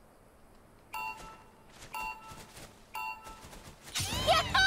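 Electronic game beeps sound in short, evenly spaced bursts.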